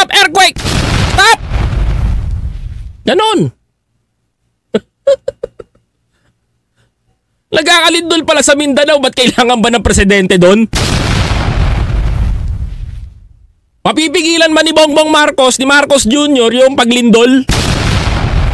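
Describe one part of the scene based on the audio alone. A man speaks with animation close into a microphone.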